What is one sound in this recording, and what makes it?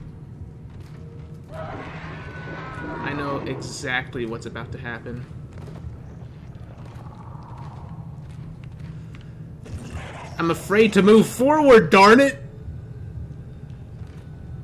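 Heavy boots thud slowly on a hard metal floor.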